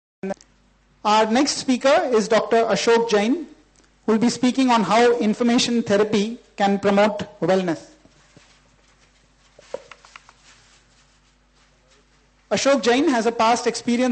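A middle-aged man reads aloud into a microphone.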